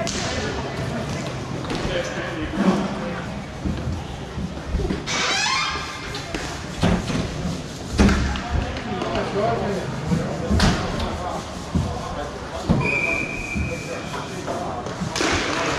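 Players call out to each other across the rink.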